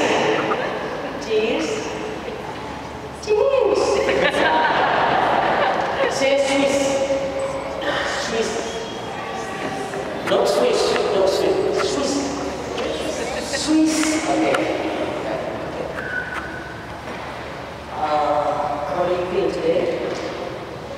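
Young children sing together in a large echoing hall.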